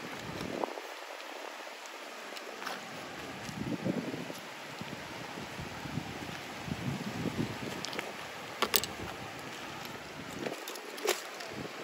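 Shallow water laps gently over sand and shells.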